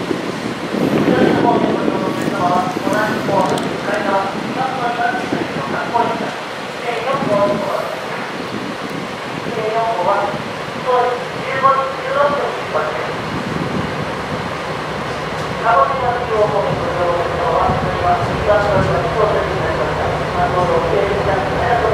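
A diesel train engine idles steadily nearby.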